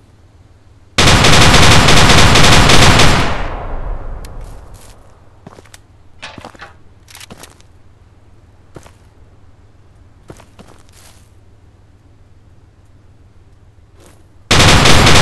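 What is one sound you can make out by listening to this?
An assault rifle fires rapid automatic bursts.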